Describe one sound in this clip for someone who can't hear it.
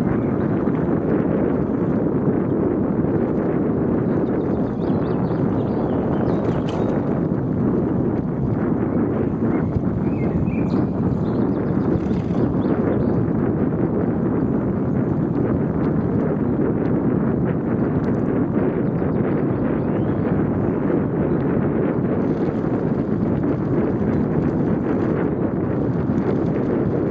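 Tyres roll steadily over a paved road.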